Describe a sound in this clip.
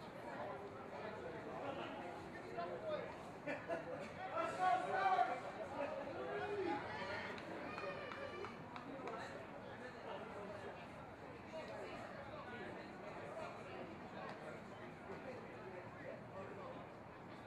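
Young women shout and call out to each other across an open field.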